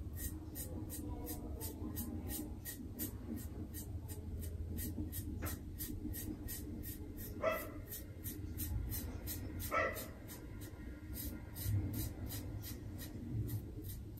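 A brush dabs rapidly and steadily against skin.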